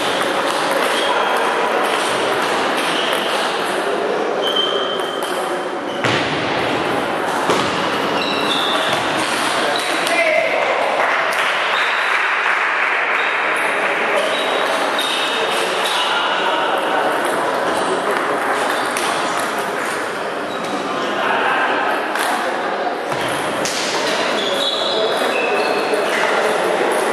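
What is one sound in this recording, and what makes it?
A ping-pong ball clicks rapidly off paddles and a table in an echoing hall.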